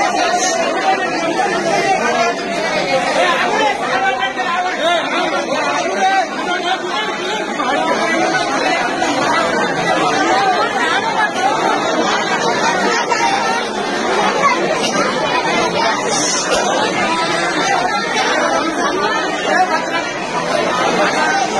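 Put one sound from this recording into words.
Men nearby talk loudly over the crowd.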